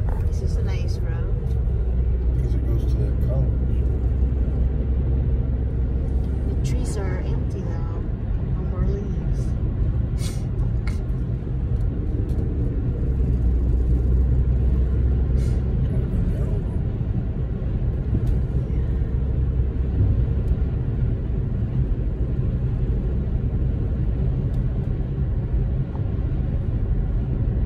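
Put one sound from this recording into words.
A car engine hums steadily from inside while driving.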